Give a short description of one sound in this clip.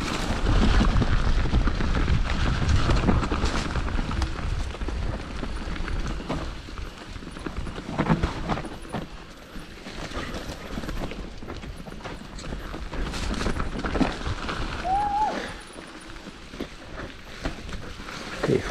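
A bike's frame and chain clatter over bumps.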